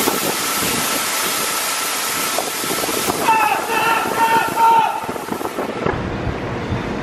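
Grain pours steadily into a trailer with a loud rushing hiss.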